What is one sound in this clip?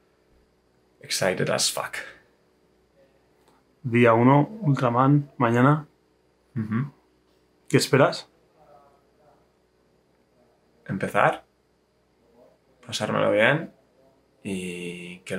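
A man speaks close by, in a relaxed and cheerful way.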